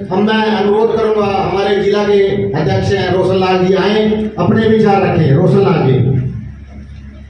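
A man speaks loudly and steadily into a microphone, heard through loudspeakers in an echoing room.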